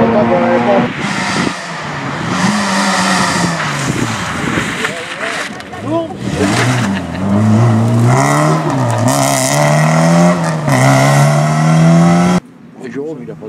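A second rally car engine screams through high revs as the car passes close by.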